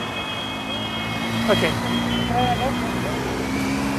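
A motorbike engine hums as it passes.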